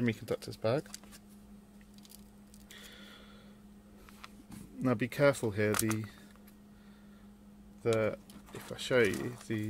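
Small plastic parts tap and rattle as hands handle them.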